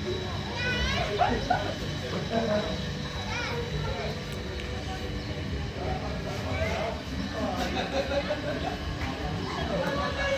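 People chatter and call out nearby outdoors.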